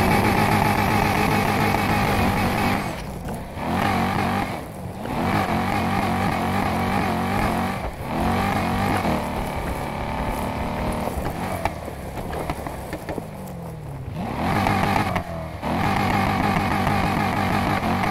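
Tyres rumble and crunch over rough ground.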